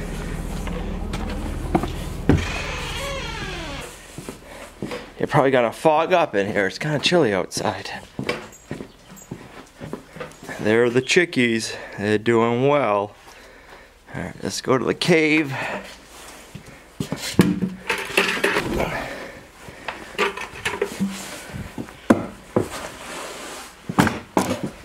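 A bucket handle rattles.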